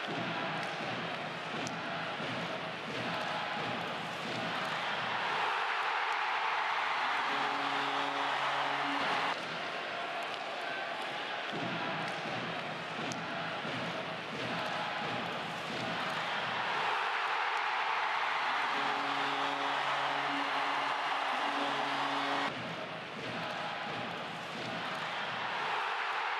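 A large crowd cheers and roars in an echoing arena.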